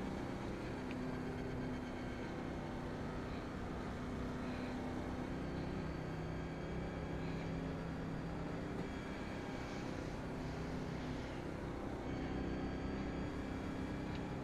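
A race car engine drones steadily at low speed.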